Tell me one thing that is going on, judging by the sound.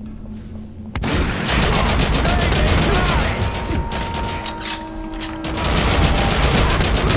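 A rifle fires in rapid, loud bursts with ringing echoes.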